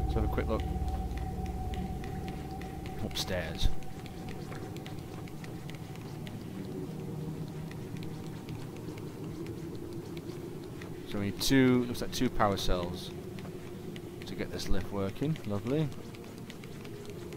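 Small footsteps patter on a hard floor.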